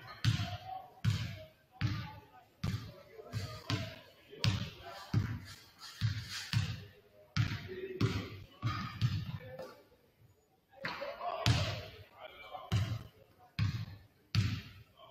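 A basketball bounces on a hardwood floor, each bounce echoing through a large hall.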